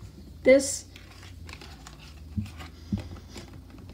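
Playing cards slide and rustle against each other.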